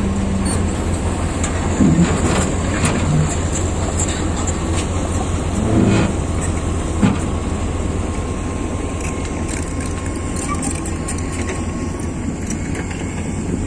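A heavy diesel engine idles with a steady low rumble.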